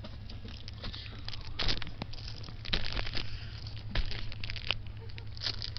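Plastic bags rustle and crinkle.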